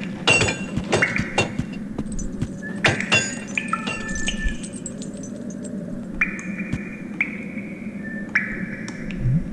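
Short video game sound effects chime and clatter.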